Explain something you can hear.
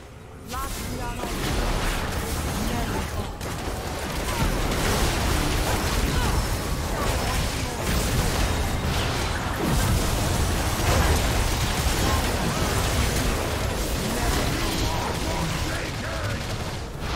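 Spell effects crackle and burst in a frantic video game battle.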